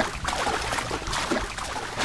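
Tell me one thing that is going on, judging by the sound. Heavy rain pours down.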